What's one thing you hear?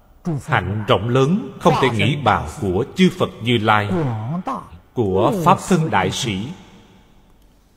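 An elderly man speaks calmly and slowly, close to a microphone.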